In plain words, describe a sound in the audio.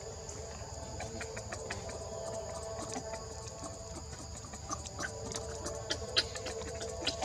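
Young monkeys squeak in short, high bursts.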